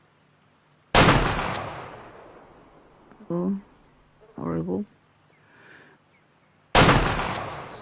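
A rifle fires with a loud crack that rolls away in a long echo.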